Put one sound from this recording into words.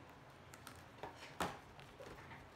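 A book rustles and thumps as it is lowered.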